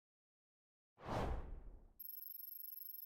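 A quick whoosh sweeps past.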